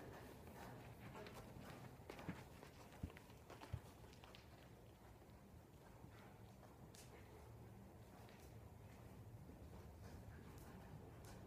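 A horse's hooves thud softly on sand in a large echoing hall.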